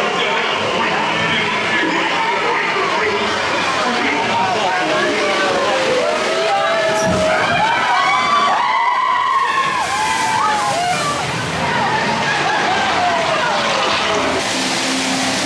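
A man sings and calls out loudly through a loudspeaker, echoing.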